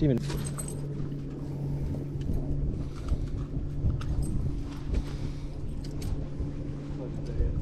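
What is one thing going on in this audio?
Hands rattle a fishing net while freeing a hooked fish.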